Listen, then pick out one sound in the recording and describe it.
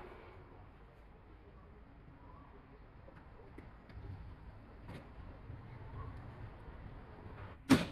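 Flames crackle softly.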